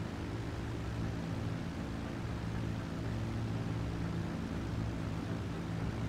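A helicopter's engine and rotor drone steadily.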